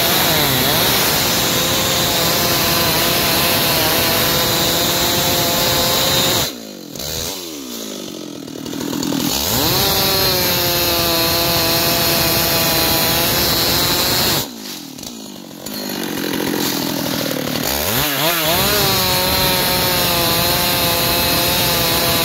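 A chainsaw roars loudly as it cuts through a log, dropping to an idle between cuts and revving up again.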